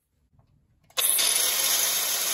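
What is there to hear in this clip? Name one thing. An angle grinder whines loudly.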